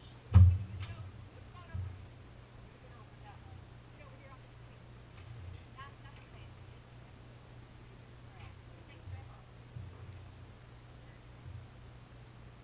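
A wooden boat hull knocks and thumps as it is shifted.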